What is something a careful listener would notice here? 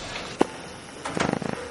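A flute starts to play.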